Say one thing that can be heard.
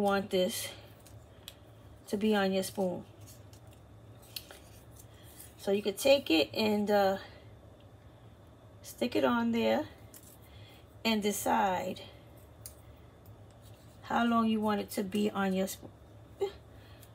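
A woman speaks calmly and close by, in short phrases with pauses.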